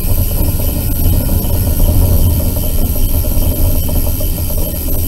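A vehicle's engine rumbles steadily as it drives along.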